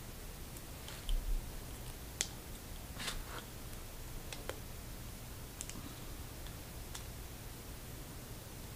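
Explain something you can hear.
Small wooden sticks click softly in hands.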